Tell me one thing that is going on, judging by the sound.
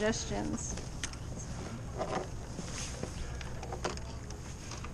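Oars knock in their locks with dull clunks.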